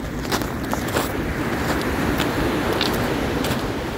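Footsteps crunch on loose pebbles.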